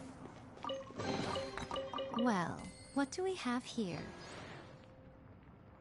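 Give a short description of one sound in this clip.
A magical chime rings out.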